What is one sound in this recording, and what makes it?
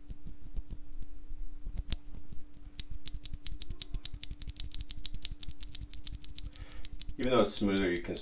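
A small metal part clicks and ticks as fingers turn it.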